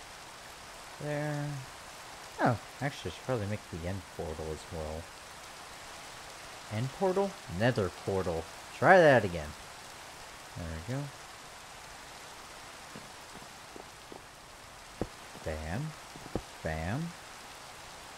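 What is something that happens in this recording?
A man talks casually through a headset microphone.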